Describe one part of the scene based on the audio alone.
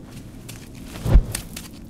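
A child lands with a soft thump.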